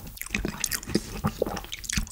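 A metal spoon scrapes against a metal pot.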